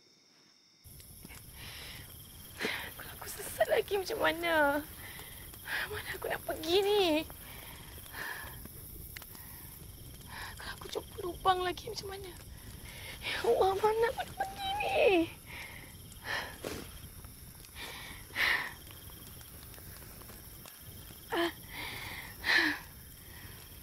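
A young woman speaks tearfully and emotionally, close by.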